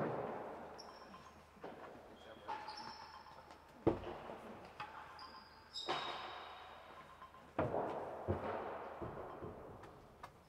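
A ball bounces on a hard floor and off walls.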